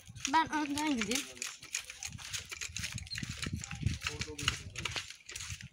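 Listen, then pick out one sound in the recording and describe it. Footsteps walk on paving stones.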